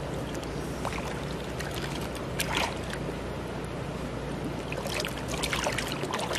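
Fish flap and splash in water.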